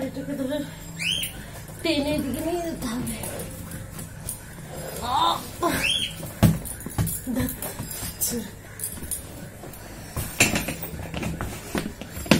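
A bag rustles and clatters as it is handled.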